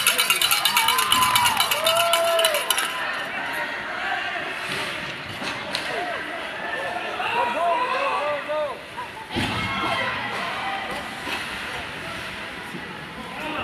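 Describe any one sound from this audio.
Spectators shout and cheer in a large echoing arena.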